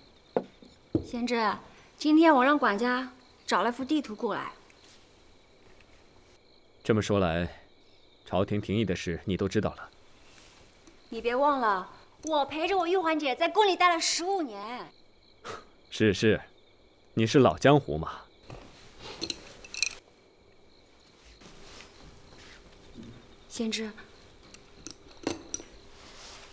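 A young woman speaks calmly and with animation, close by.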